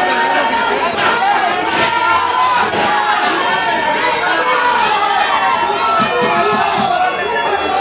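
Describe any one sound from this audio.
Wrestlers slap each other with sharp smacks.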